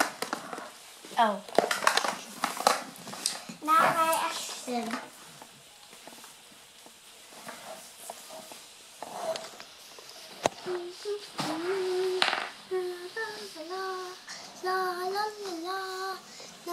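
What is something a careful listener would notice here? A young girl speaks in a high, playful voice close by.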